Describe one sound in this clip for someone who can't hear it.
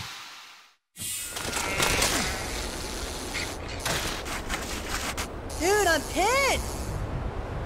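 A bicycle's tyres rumble and crunch over rough ground.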